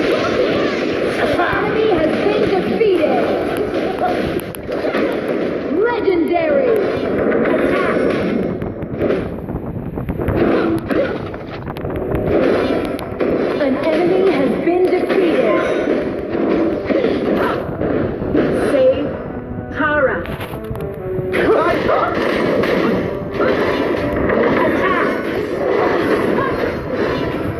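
Video game combat sound effects clash and crackle.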